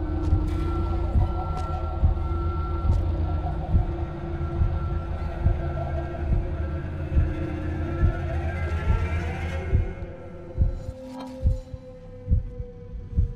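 Slow footsteps thud on a hard floor.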